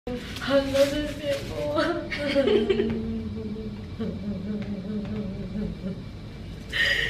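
A young woman laughs loudly and shrieks close by.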